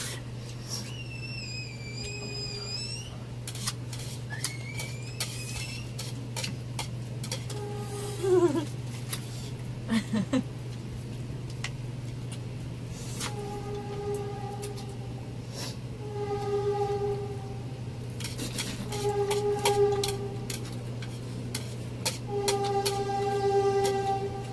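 A woman chews and smacks noodles close by.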